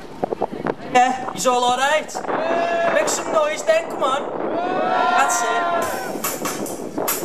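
Two young men sing into microphones through loudspeakers outdoors.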